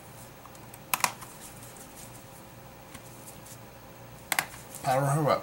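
Plastic parts click and snap as they are pressed together.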